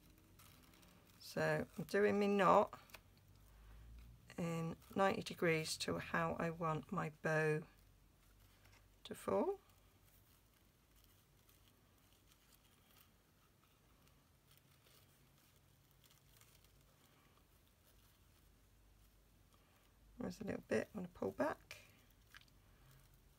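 Paper and ribbon rustle softly as they are handled.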